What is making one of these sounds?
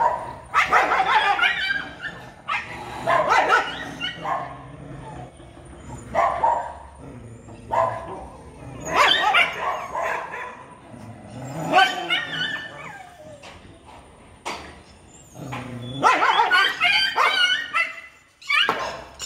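Dogs growl and snarl fiercely in a fight nearby.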